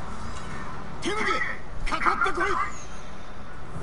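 A man shouts loudly and challengingly, close by.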